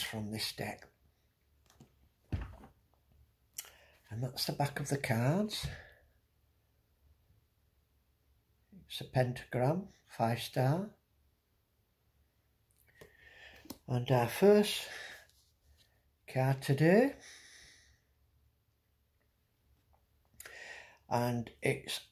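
A middle-aged man speaks calmly and close up, in short bursts with pauses.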